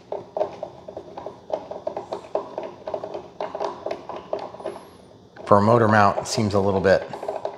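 A ratchet screwdriver clicks as a screw is driven in.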